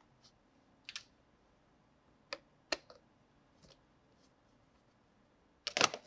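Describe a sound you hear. A screwdriver clicks against a plastic lid.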